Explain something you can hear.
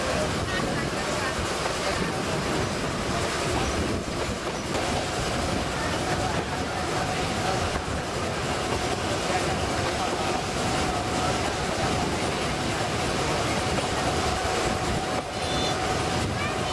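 Wind rushes past an open train carriage.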